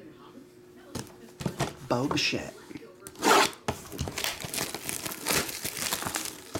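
A cardboard box is handled and rubbed.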